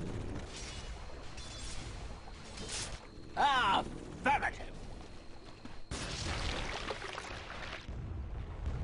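Game sound effects of fighting clash and whoosh.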